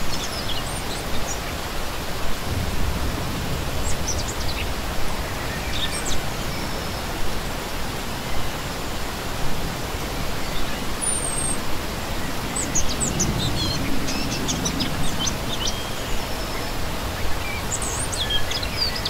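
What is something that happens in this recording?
A shallow stream rushes and babbles steadily over rocks.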